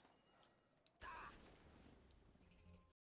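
A skier crashes into deep snow with a soft thud.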